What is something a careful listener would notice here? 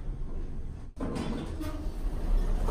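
Elevator doors slide open with a soft rumble.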